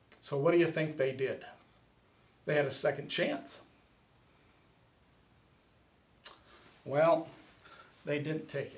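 A middle-aged man speaks calmly and clearly close to a microphone, in short phrases with pauses.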